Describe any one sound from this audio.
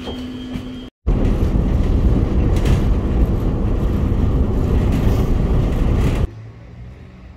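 A train rumbles loudly along the tracks.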